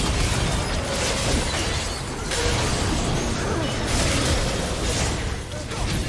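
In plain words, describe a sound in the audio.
Spell effects crackle and burst in a game fight.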